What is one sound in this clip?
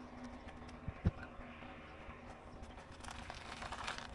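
Gravel rattles as it is scooped by hand into a wheelbarrow.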